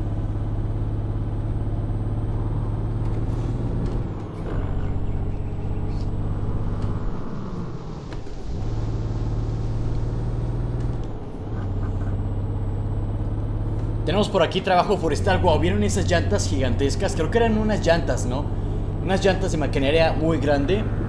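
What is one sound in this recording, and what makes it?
A bus engine hums steadily, dropping and rising as the gears change.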